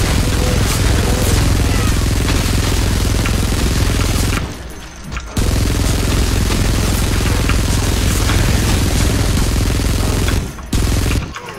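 A rapid-fire machine gun roars in long loud bursts.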